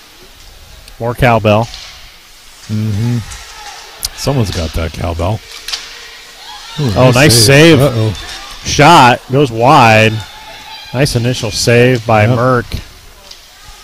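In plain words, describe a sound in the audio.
Spectators shout loudly nearby in an echoing rink.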